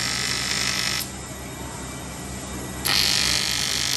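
A gas torch flame hisses.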